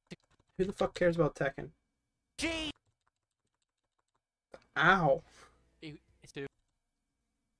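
A young man speaks with animation into a headset microphone, in short bursts.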